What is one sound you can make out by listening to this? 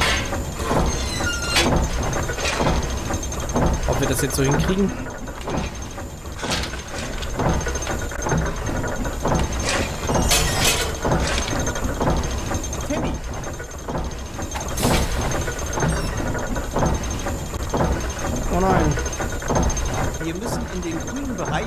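Metal clanks and knocks.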